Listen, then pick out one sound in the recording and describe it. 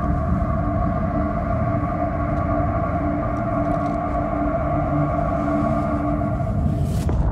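Boots shuffle softly across a floor.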